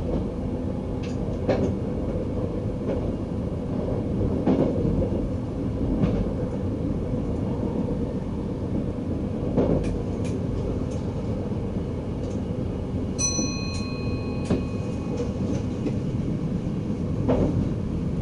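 Train wheels clack over rail joints now and then.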